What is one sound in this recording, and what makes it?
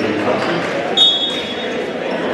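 A whistle blows sharply.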